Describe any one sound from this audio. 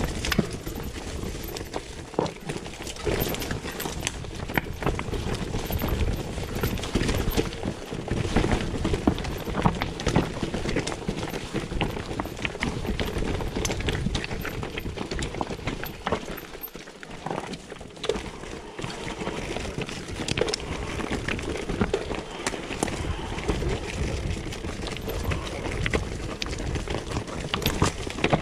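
Bicycle tyres roll and crunch over a rocky trail.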